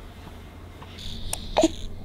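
A baby sucks on a bottle.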